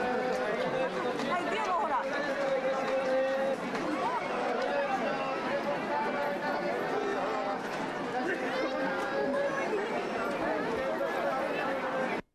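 A crowd murmurs and chatters close by.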